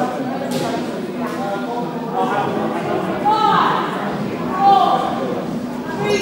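Young players chatter and call out across a large echoing hall.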